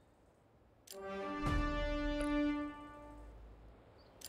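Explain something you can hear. A bright horn-like chime rings out and fades.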